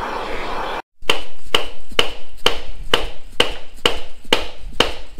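A hammer strikes metal in repeated blows.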